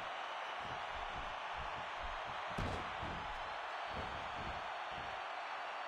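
A large arena crowd roars and cheers.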